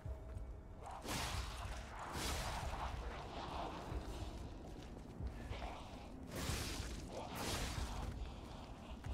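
Heavy weapon blows swish and strike with loud impacts.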